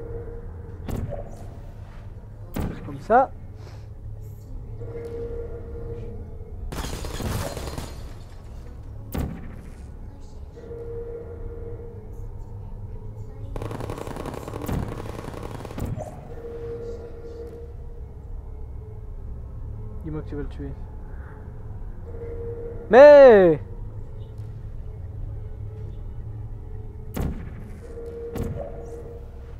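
An energy gun fires with short, sharp zaps.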